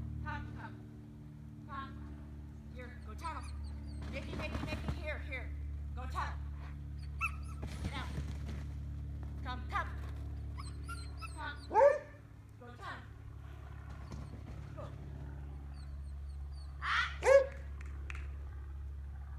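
A young woman calls out commands to a dog.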